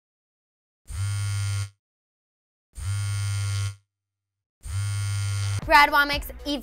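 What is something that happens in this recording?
A phone vibrates with a loud buzz three times.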